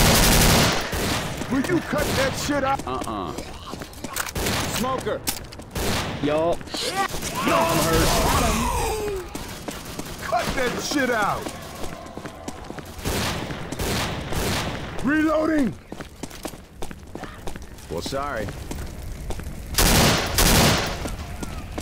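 A rifle fires in short, loud bursts.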